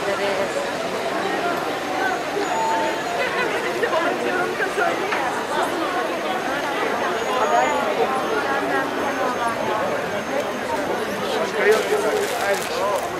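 A crowd of women chants together outdoors.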